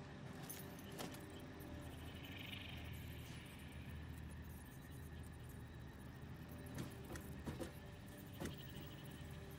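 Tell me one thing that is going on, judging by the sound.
Short electronic clicks sound now and then as parts snap into place.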